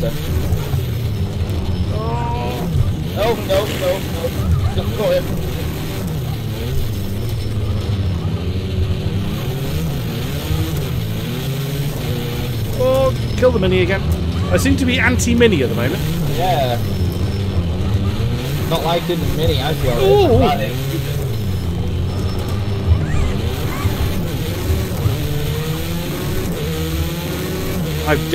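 A racing car engine roars steadily, rising and falling in pitch as it revs through the gears.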